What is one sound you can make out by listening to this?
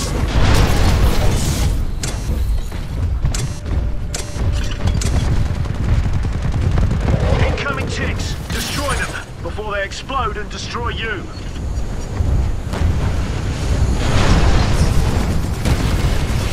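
Heavy mechanical footsteps thud and rumble.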